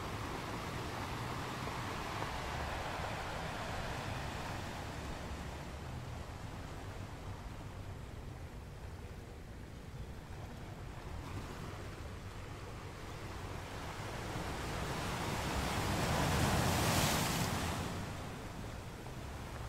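Ocean waves roar and crash against rocks.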